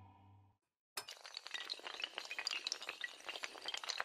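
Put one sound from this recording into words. Dominoes clatter rapidly as they topple.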